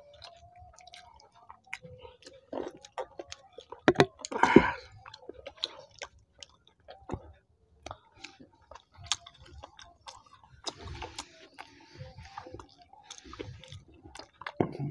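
A woman chews and smacks her lips loudly close to a microphone.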